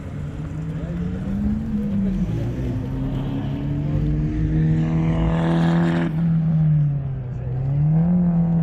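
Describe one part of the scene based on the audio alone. A sports car engine revs and whines as the car speeds along a track.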